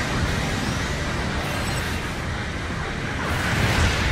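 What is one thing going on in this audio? A giant robot's jet thrusters roar as it boosts.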